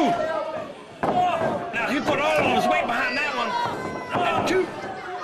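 A sharp slap of a blow lands on bare skin.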